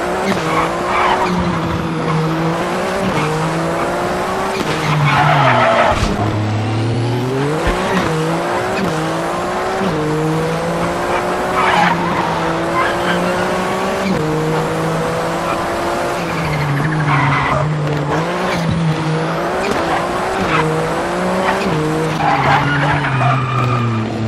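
Tyres screech on tarmac in the corners.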